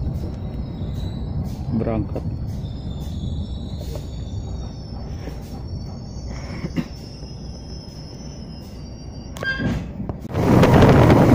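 A train rumbles softly along the tracks, heard from inside a carriage.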